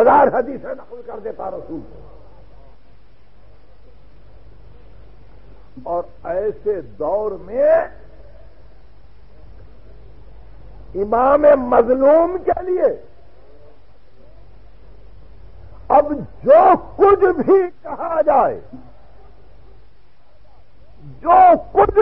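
An elderly man recites in a slow, chanting voice in short phrases with long pauses, heard through an old recording.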